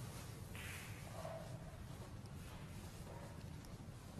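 A snooker ball is set down on the table with a soft click.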